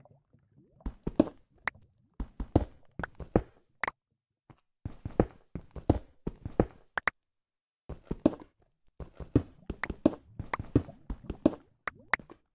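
A pickaxe knocks repeatedly against stone, which cracks and breaks.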